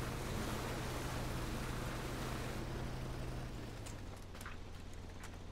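A vehicle engine hums steadily, then fades.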